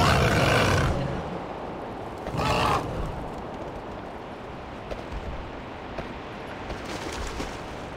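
Wind rushes in loud gusts as a game character flies through the air.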